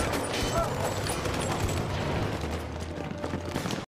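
Footsteps run across stone pavement.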